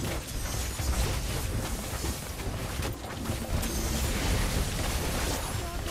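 Game battle effects clash and burst with spell sounds.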